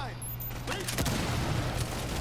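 A breaching charge explodes with a loud blast.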